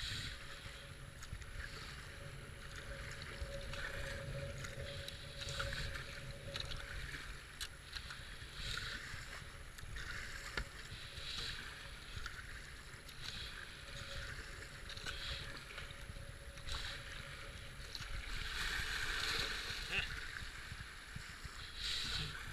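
Fast river water rushes and gurgles around a kayak.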